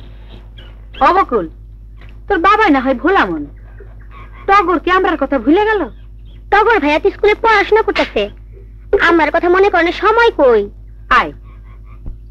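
A woman speaks loudly with emotion nearby.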